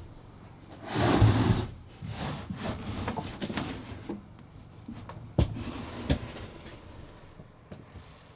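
A wooden wall frame creaks and thumps as it is lifted upright.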